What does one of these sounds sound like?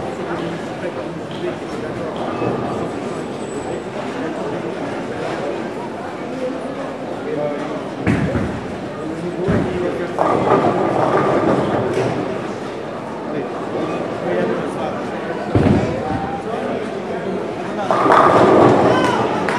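A crowd of men chatters and murmurs nearby in a large echoing hall.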